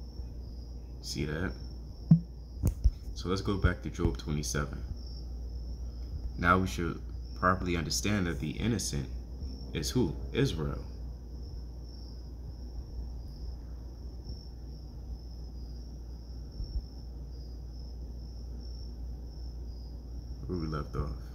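A young man talks calmly and close to a microphone, with pauses.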